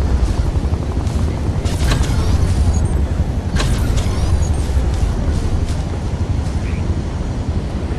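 Leaves rustle as someone pushes through dense bushes.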